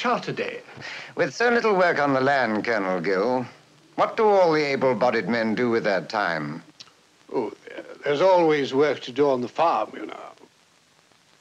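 An elderly man sings loudly with a wavering voice.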